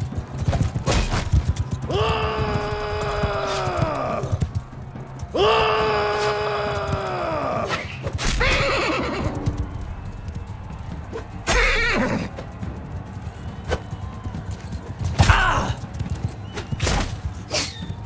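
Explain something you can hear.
Weapons clash and strike in short, sharp hits.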